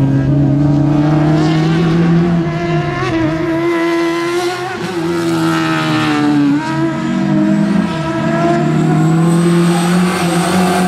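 A four-cylinder hatchback rally car revs hard through the gears.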